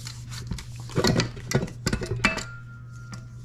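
A spatula scrapes and knocks against a metal bowl.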